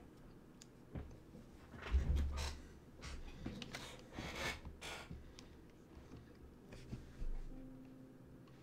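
Headphones rustle and knock as a man adjusts them.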